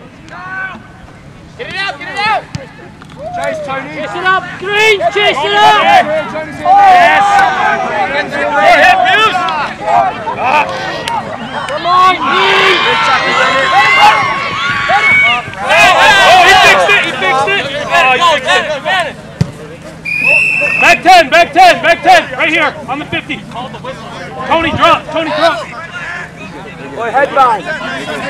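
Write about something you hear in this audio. Young men shout to each other on the field.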